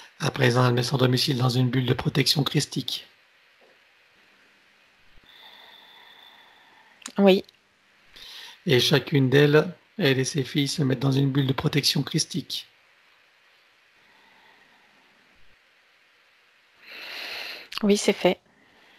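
A middle-aged man speaks calmly through a headset microphone on an online call.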